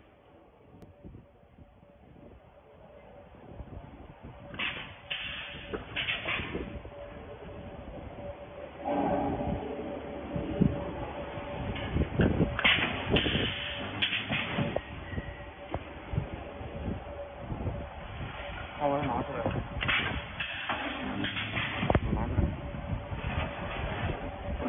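A metal wire rack rattles and clanks as it is handled.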